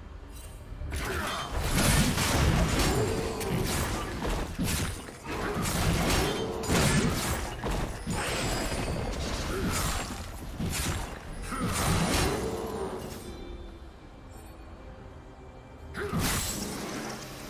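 Spell effects burst and crackle in a fast fight.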